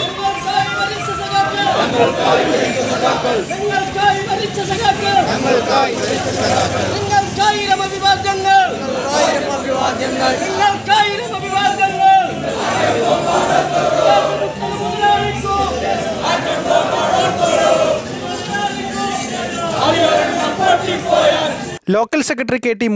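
A crowd of men chants slogans loudly outdoors in unison.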